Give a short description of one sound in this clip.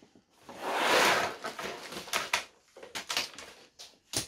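Plastic bags rustle and slide out of a cardboard box.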